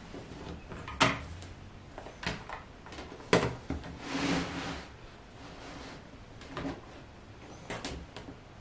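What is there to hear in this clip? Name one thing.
A plastic ruler taps and slides on a cutting mat.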